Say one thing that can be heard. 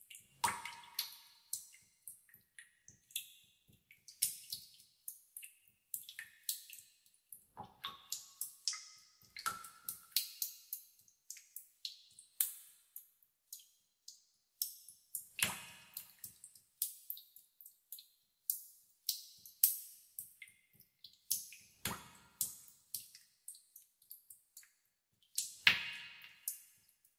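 Water drops plink and splash into still water, one after another.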